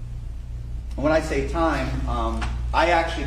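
A man speaks calmly and clearly in a large, echoing hall.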